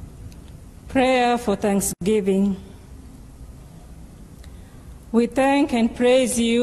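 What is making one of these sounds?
A woman reads out clearly into a microphone.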